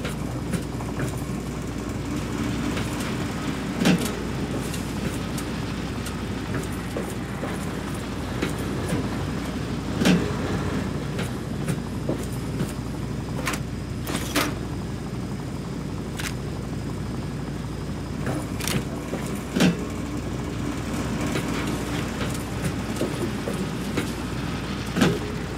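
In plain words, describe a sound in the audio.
A low machine hum drones steadily in an echoing space.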